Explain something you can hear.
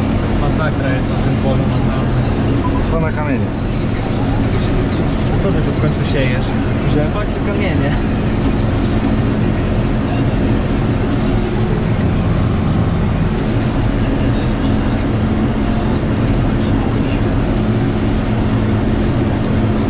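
A tractor engine drones steadily from inside the cab.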